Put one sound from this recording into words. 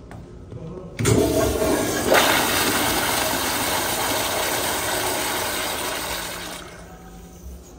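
A toilet flushes loudly with a rushing roar of water.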